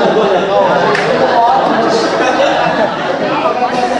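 A man speaks loudly to a group.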